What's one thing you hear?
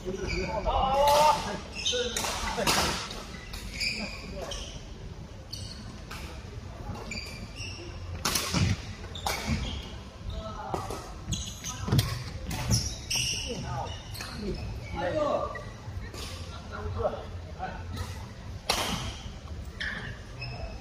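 Shuttlecocks pop off badminton rackets in a large echoing hall.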